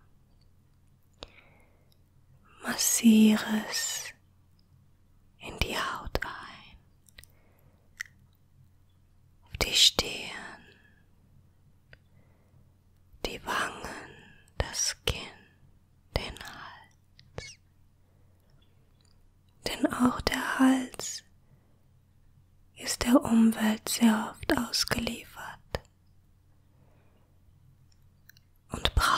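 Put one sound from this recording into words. Hands rub and brush against skin close to a microphone.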